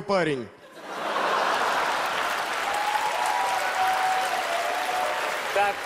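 A large audience applauds.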